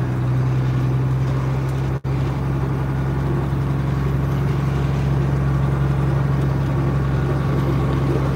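A truck's diesel engine idles with a steady low rumble, heard from inside the cab.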